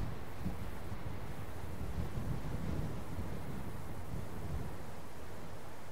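An animal rustles through tall grass.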